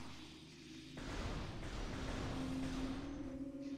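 An arm cannon blasts with a fiery roar.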